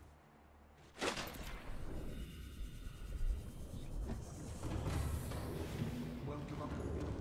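A deep muffled underwater rumble drones on.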